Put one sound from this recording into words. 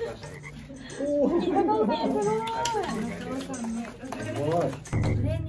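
Young women exclaim with excitement and laugh nearby.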